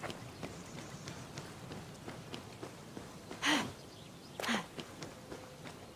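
Footsteps patter quickly on stone and dirt.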